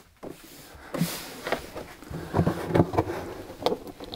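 A heavy plastic case scrapes and thumps on a rubber mat.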